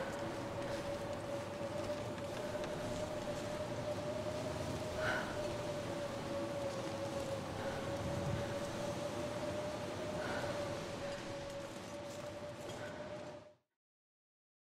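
Wind howls steadily across open snow.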